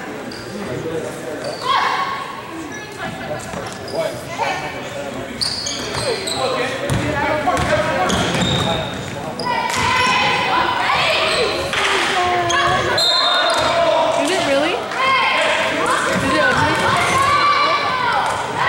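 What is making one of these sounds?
Players and spectators shout and cheer in a large echoing gym.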